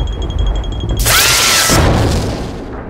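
A heavy press slams down with a loud boom.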